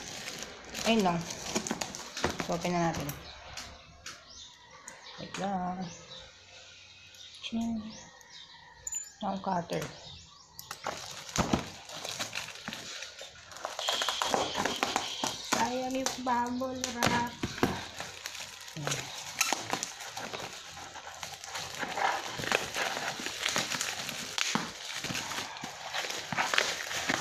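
Plastic bubble wrap crinkles and rustles as hands handle a package.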